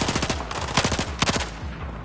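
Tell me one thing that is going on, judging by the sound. Helicopter rotors thud overhead.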